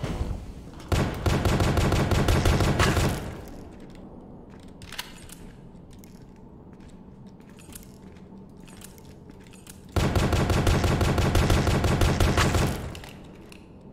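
A gun fires in rapid bursts of loud shots.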